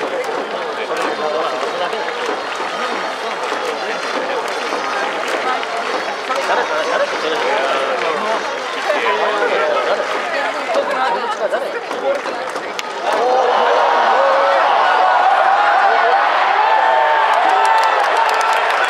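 A large crowd chants and sings together in an open stadium.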